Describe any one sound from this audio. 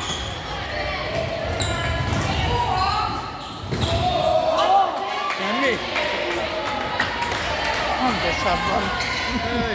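Young girls shout and call out to each other in an echoing hall.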